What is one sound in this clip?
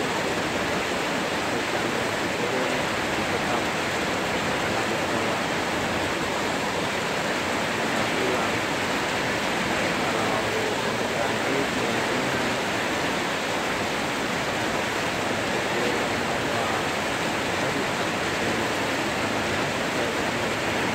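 Heavy rain drums on metal roofs.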